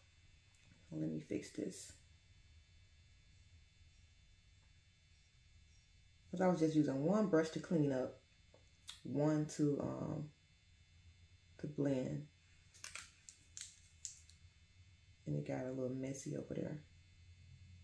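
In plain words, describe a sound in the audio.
A young woman talks calmly and close to a microphone, with pauses.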